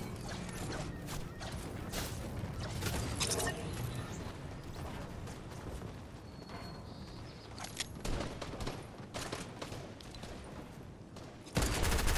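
Quick footsteps patter across a hard surface.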